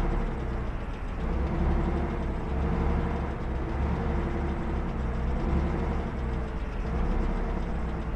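Tank tracks clatter and squeak on the road.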